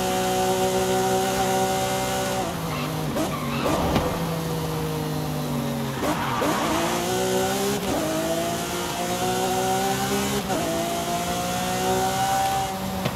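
A sports car engine roars at high revs, dropping and rising in pitch as gears change.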